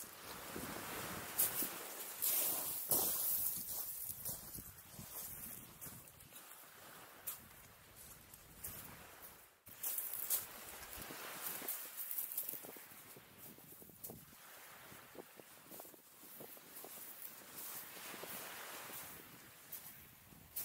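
Wind blows hard across the open shore.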